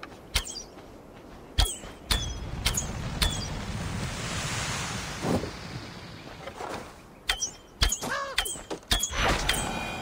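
An arrow is loosed from a bow with a sharp twang.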